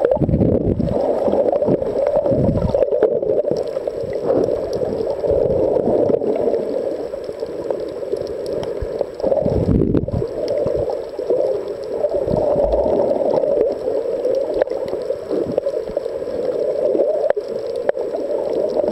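Water swishes and rumbles, muffled, around a microphone held underwater.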